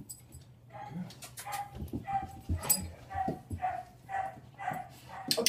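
A dog whines in short high yelps.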